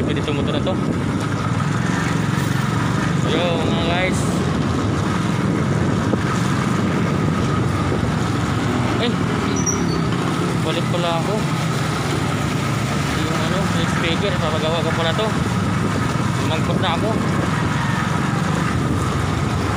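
Wind rushes and rumbles against a microphone.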